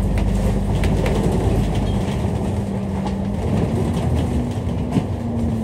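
A bus body rattles and clatters as it drives.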